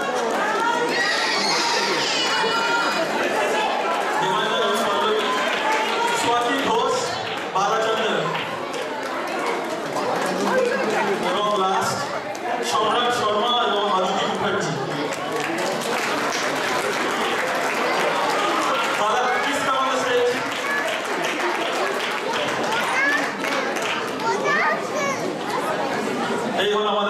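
A large crowd of men and women chatters in a big echoing hall.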